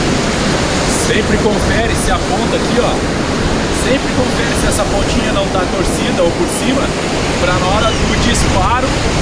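A young man talks outdoors in wind.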